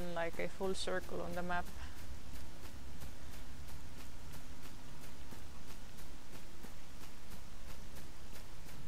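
Footsteps fall on grass at a walking pace.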